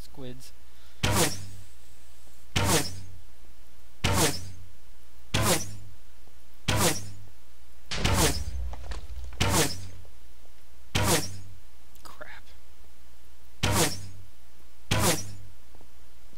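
A bow twangs as arrows are shot, again and again at a steady pace.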